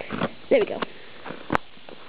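A finger taps and scrapes a cardboard box.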